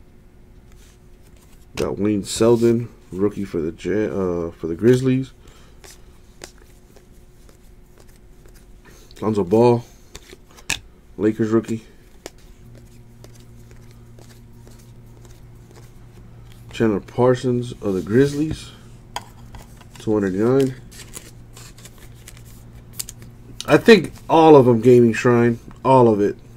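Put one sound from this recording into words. Trading cards rustle and slide as hands flip through them.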